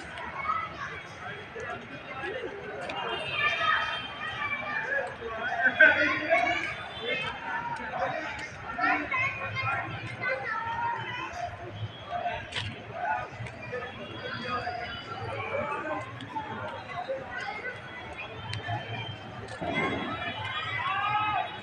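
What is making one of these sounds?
Children and adults chatter and call out in the distance outdoors.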